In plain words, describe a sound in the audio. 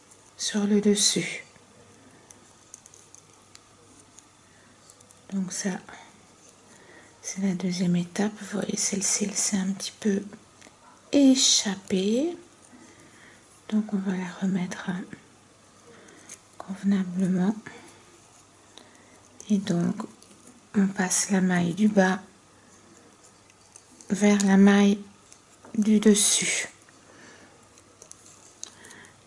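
A metal hook softly scrapes and clicks against loom pegs as yarn is pulled.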